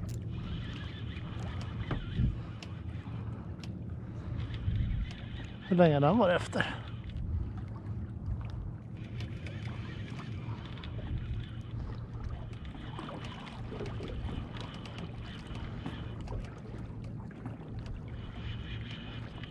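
Small waves lap gently against the side of a boat.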